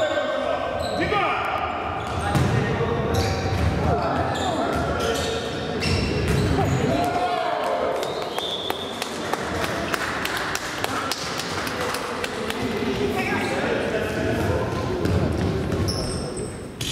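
A ball thuds as it is kicked.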